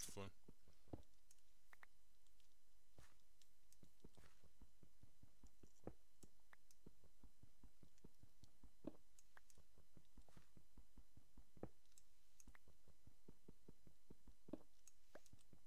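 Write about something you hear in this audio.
Stone blocks break with a crunch.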